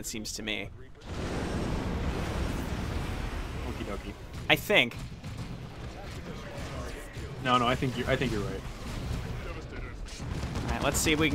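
Guns fire and explosions rumble in a battle.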